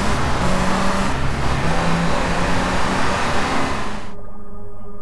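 A car engine hums and revs.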